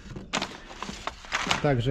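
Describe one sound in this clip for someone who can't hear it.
Small metal tools clink and rattle in a box as a hand rummages through them.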